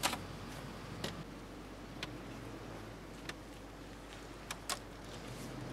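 Keys click and rattle in a car's ignition.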